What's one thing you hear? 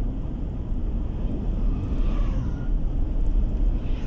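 An oncoming truck passes by.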